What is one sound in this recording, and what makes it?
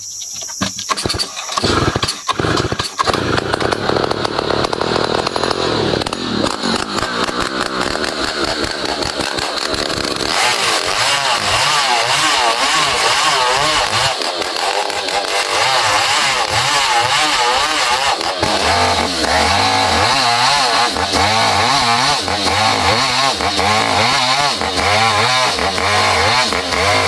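A chainsaw engine roars loudly while cutting through wood.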